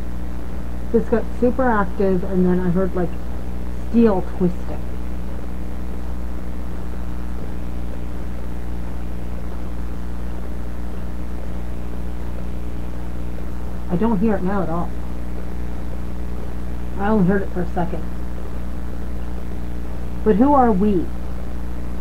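An electronic toy gives short warbling, wavering sounds now and then.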